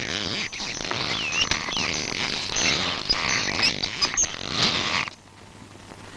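A wooden press creaks and groans as an ox drives it round.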